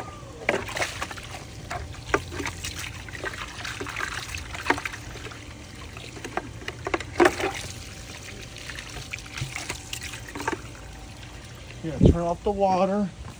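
Water from a hose splashes into a plastic tub outdoors.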